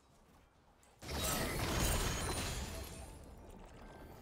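A magic spell bursts with a loud whooshing blast that slowly fades.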